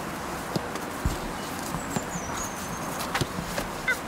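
A man kicks a football on grass.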